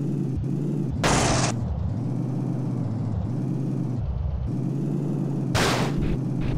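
A car crashes and scrapes against rocky ground.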